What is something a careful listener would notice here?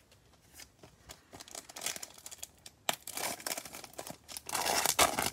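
A foil wrapper crinkles and tears as a pack is opened.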